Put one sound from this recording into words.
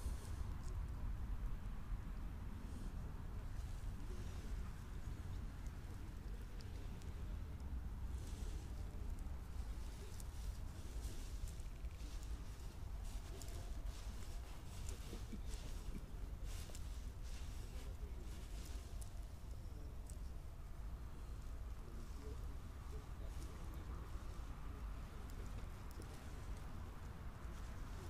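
Fingers handle a fishing line and a small lure with faint ticks and rustles.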